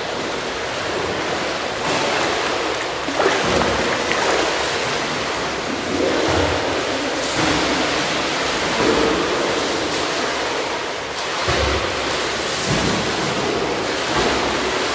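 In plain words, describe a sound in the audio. Water splashes and laps steadily in a large echoing indoor pool.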